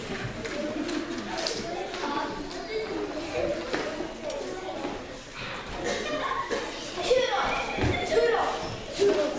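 Children speak their lines loudly in a large echoing hall.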